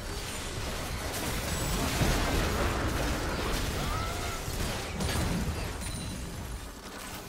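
Game spell effects burst and crackle during a fight.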